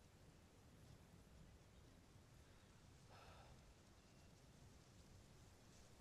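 Wind blows softly through grass outdoors.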